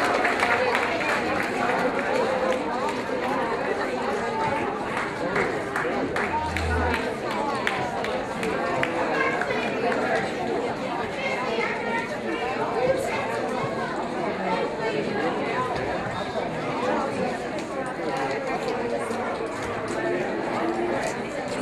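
A crowd of elderly men and women chatters in a large room.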